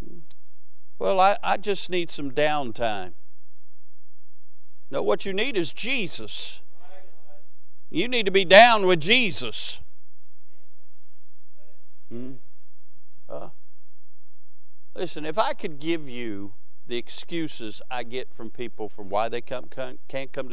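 A man speaks slowly and calmly through a microphone and loudspeakers in an echoing hall, with long pauses.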